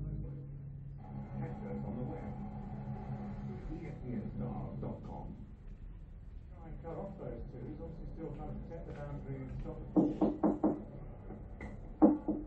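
A television plays a broadcast with a commentator talking.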